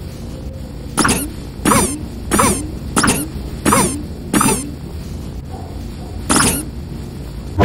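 Shoes squeak in short, bouncy squeaks.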